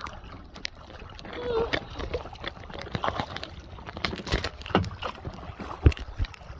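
Paddles splash in the water.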